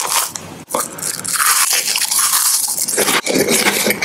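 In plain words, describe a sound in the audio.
A crisp wafer crunches loudly between teeth, very close.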